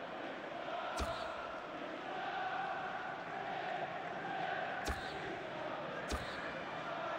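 Short menu clicks sound a few times.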